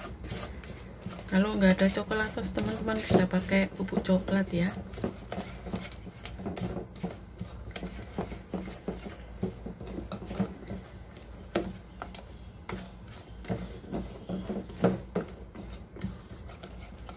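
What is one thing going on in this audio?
A spatula scrapes and taps against a metal bowl while stirring thick batter.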